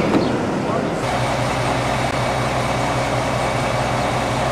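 A diesel locomotive engine idles nearby with a steady, low rumble.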